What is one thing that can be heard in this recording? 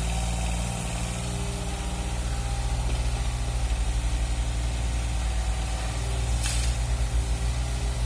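A small excavator's diesel engine chugs steadily close by.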